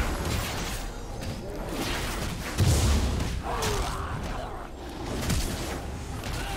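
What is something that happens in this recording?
Game spell effects whoosh and burst during a fight.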